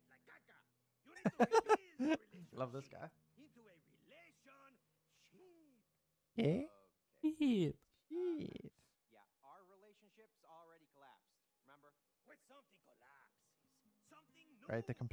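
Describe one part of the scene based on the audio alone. A man speaks in a cartoonish voice, shouting excitedly.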